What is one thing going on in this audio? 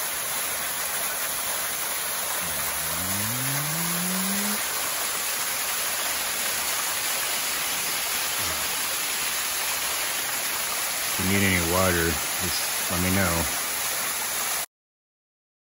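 A small waterfall splashes and rushes steadily into a pool.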